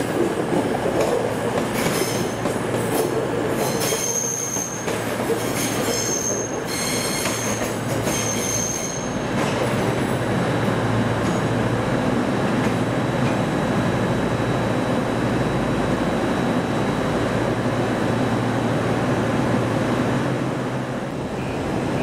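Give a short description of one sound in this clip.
A diesel train rumbles as it pulls slowly away and fades.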